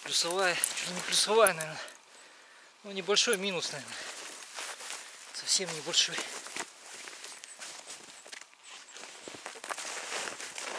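Heavy fabric rustles as a coat is handled.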